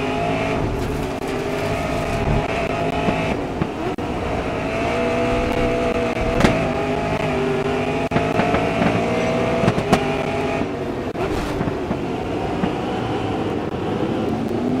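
A racing car engine roars steadily at high revs, its pitch shifting as it changes speed.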